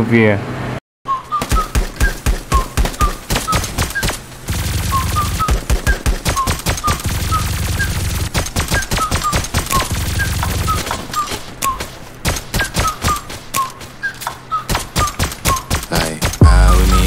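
A gun fires in rapid bursts of sharp shots.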